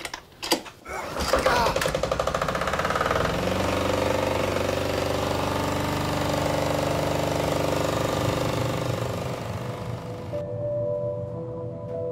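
A single-cylinder diesel engine starts and idles.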